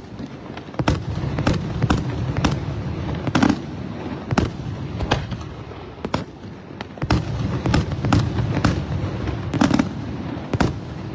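Fireworks burst with loud bangs, one after another.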